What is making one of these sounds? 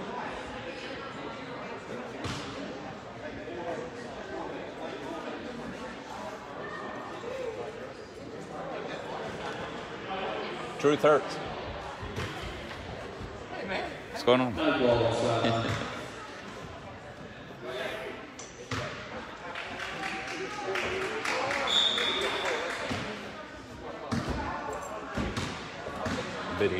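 A crowd of spectators murmurs and talks.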